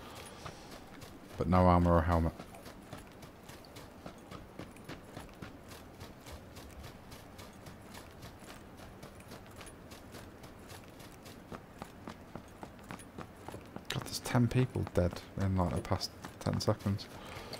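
Footsteps run quickly over grass and gravel.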